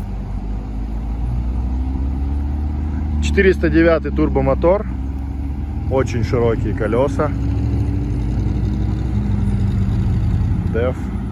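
An off-road vehicle's engine rumbles steadily as it climbs over rough ground.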